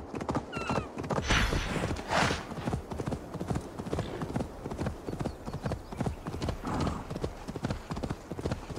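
A galloping horse's hooves thud rapidly and steadily.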